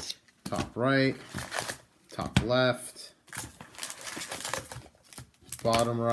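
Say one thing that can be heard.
Foil packs crinkle and rustle as they are handled.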